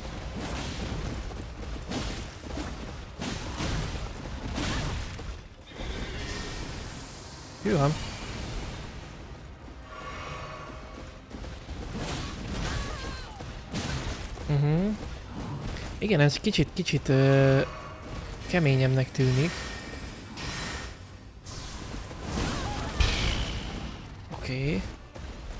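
Metal weapons clash and clang in a fight.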